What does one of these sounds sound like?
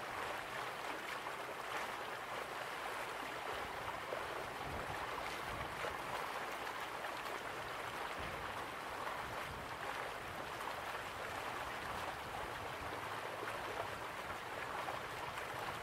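A crowd murmurs softly in the distance.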